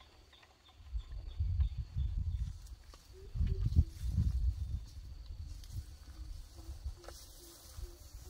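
Feet scrape and knock against a wooden pole.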